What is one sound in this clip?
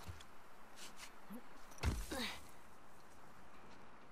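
A person lands with a thud.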